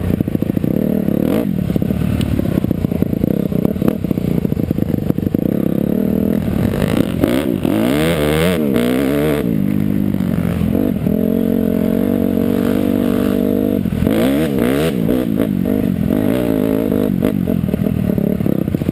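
A dirt bike engine roars close by, revving up and down as it climbs.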